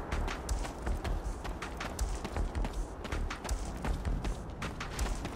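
Footsteps crunch on gravel at a quick, steady pace.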